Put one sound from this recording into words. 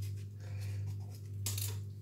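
A knife scrapes and cuts through meat.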